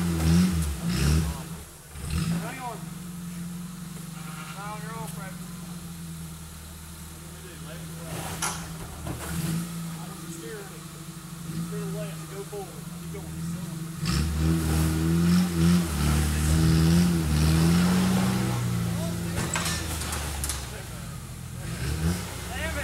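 Off-road engines rumble and rev nearby, outdoors.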